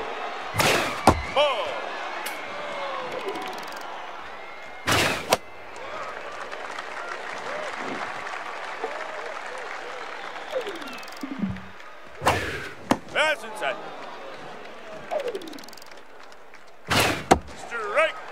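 A baseball smacks into a catcher's mitt with a sharp pop.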